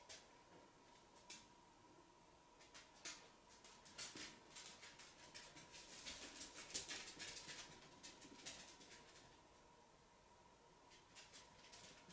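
A mascara brush brushes softly against eyelashes.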